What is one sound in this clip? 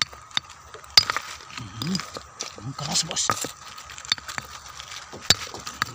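A rock scrapes and clatters against pebbles as a hand moves it.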